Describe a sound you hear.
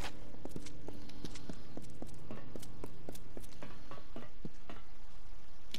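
Footsteps thud quickly on a hard stone floor.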